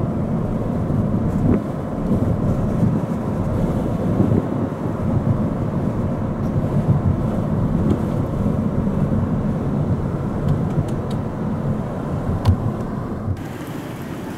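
A car engine hums and tyres rumble on the road from inside a moving car.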